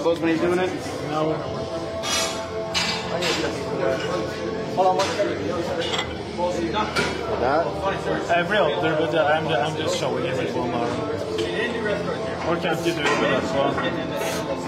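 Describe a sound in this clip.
Dumbbells clank against a metal rack.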